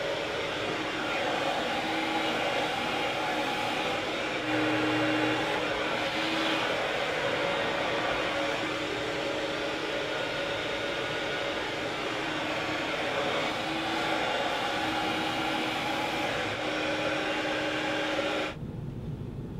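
A hair dryer blows with a steady whirring rush.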